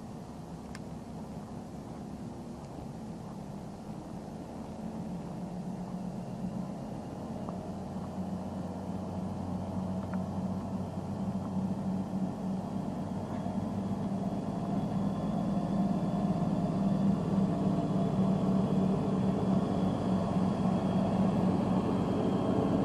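A truck engine idles steadily, growing louder and closer.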